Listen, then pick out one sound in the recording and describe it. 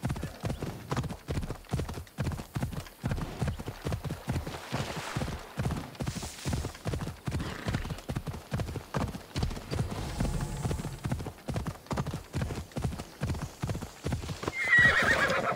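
Hooves gallop in a quick steady rhythm.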